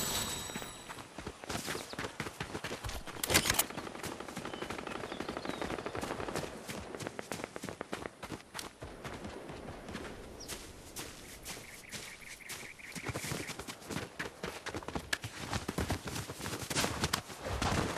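Footsteps patter quickly over ground.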